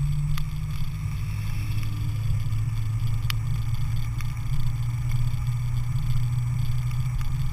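A car engine drones steadily at speed.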